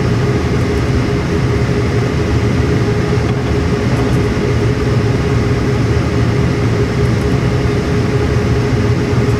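A diesel locomotive engine rumbles and drones steadily.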